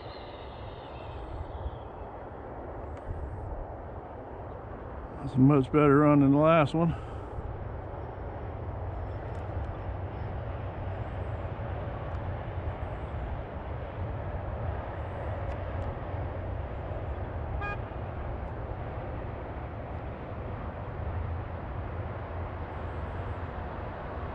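Wind rushes steadily past while riding along a road.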